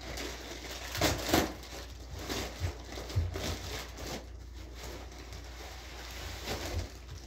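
A plastic jug crinkles in a man's hands.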